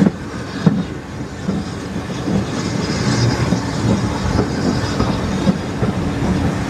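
A train rumbles steadily along the track, its wheels clicking over rail joints.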